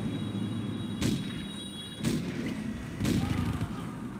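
Cannons in a game fire with sharp booms.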